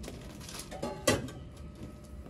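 A metal pot clanks against metal.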